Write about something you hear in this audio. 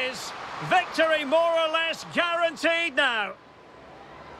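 A referee's whistle blows several times.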